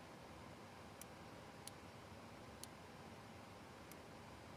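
Cockpit switches click a few times.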